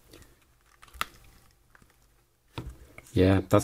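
A small plastic connector clicks softly as fingers press and pry at it.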